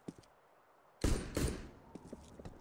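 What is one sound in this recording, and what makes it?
A heavy thud sounds as a body lands after a drop.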